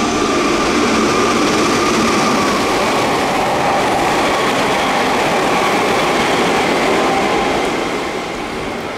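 A train rushes past close by with a loud rumble and roar.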